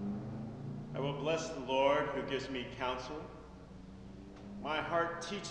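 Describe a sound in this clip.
A man chants in a large echoing hall.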